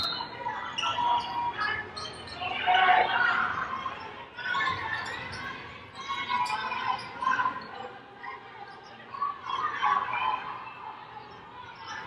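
A small crowd murmurs in the stands.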